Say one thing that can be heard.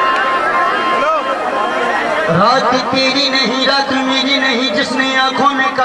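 A young man sings loudly through a microphone.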